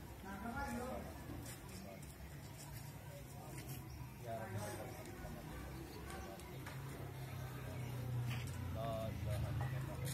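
Many men murmur and talk quietly at once, outdoors.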